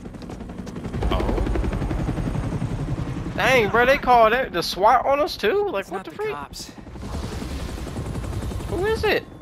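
A helicopter rotor thuds steadily nearby.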